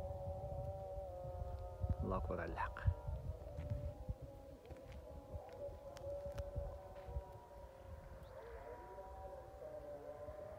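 Wind blows across an open hillside, rumbling against the microphone.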